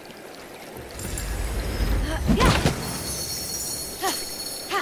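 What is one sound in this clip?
A treasure chest bursts open with a bright magical shimmer.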